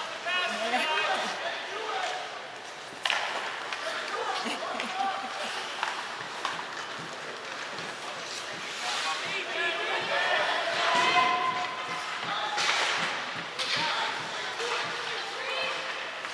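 Young players shout and call out across the rink.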